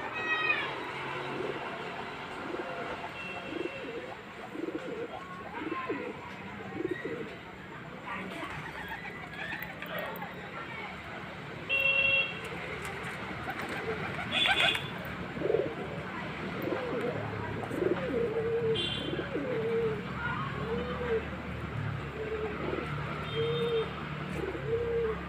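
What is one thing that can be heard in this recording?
Pigeons coo with low, repeated warbling calls.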